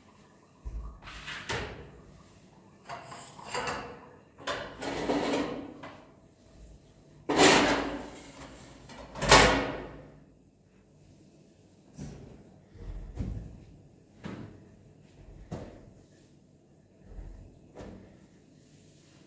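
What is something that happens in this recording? Pots and dishes clatter and knock on a counter.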